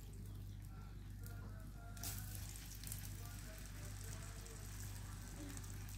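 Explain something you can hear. A fork clinks and scrapes against a glass bowl.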